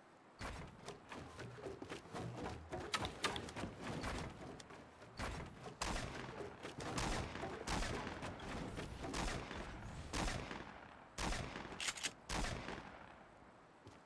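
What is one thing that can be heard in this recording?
Wooden walls are built with quick knocking thuds.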